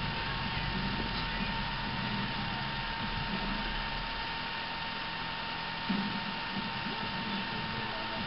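A small dog sniffs at a towel.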